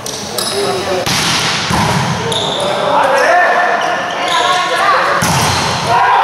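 A volleyball is struck hard and smacks in an echoing hall.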